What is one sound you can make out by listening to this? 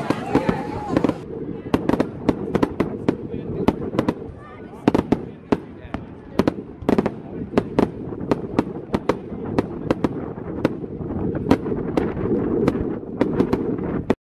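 Fireworks crackle and fizzle steadily.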